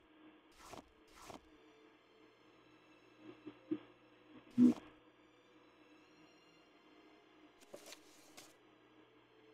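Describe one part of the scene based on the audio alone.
Short game interface clicks and thuds sound as items are picked up and dropped.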